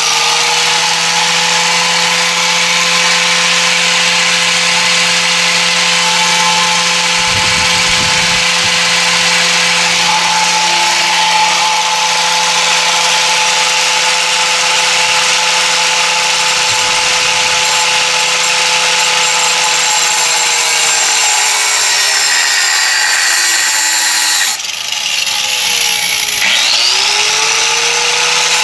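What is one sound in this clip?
An angle grinder whines loudly, slows down, then spins up again.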